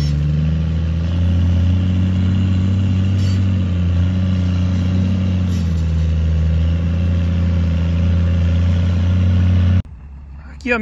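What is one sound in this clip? A loader's diesel engine rumbles loudly and steadily nearby.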